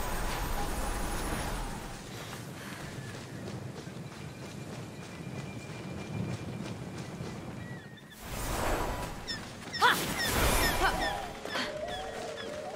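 Quick footsteps run over dirt and stone.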